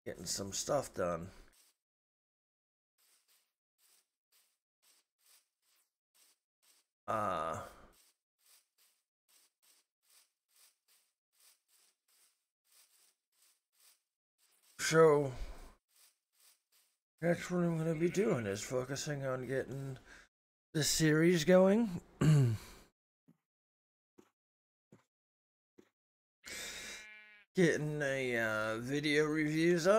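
A middle-aged man talks with animation into a close microphone, in bursts with pauses.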